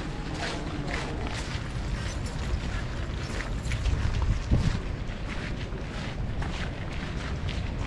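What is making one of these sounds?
Wind blows across the open ground.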